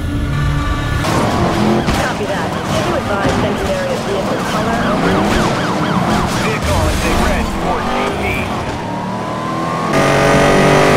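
Tyres skid and screech on the road.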